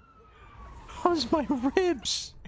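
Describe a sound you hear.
Police sirens yelp and wail close by.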